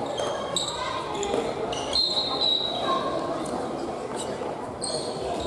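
Many young people chatter and call out across a large echoing hall.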